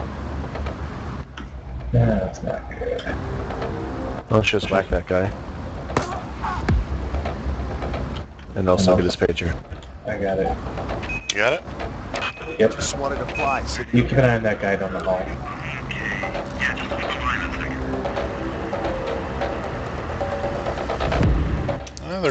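An adult man talks casually through a headset microphone.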